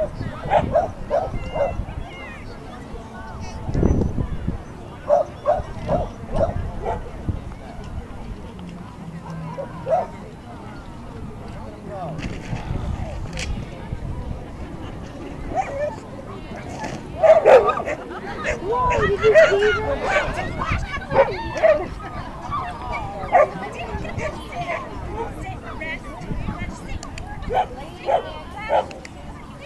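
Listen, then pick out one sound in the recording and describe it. People chatter in a crowd nearby, outdoors.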